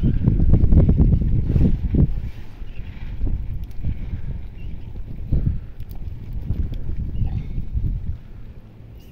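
Wind buffets and rumbles against a microphone outdoors.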